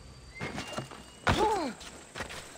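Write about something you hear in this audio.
A person drops with a thud onto the ground from a height.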